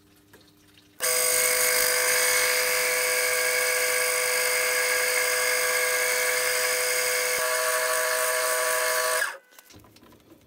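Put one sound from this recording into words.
A small metal lathe runs with a whining electric motor and gear drive, its chuck spinning freely.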